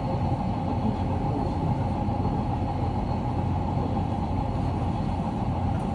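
An electric commuter train rumbles along the rails, heard from inside a car.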